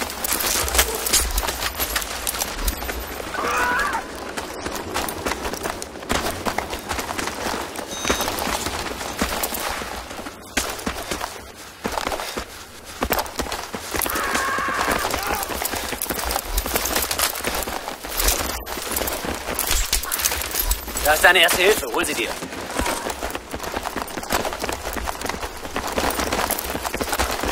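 Footsteps crunch on gravel at a run.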